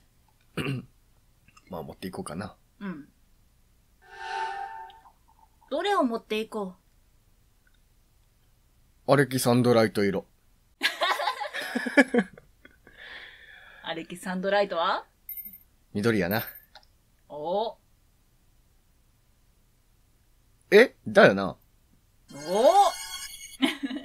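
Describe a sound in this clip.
A young man speaks and laughs close to a microphone.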